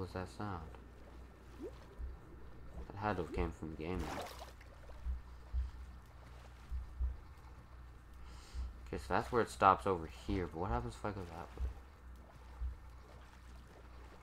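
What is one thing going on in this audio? Water splashes softly as a swimmer paddles through it.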